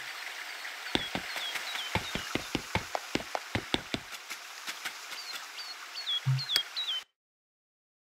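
Footsteps tap quickly on stone paving.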